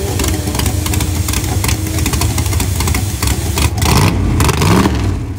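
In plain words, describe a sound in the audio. Tyres squeal during a burnout.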